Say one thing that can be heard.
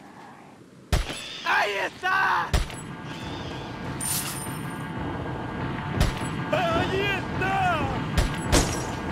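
Gunshots ring out several times.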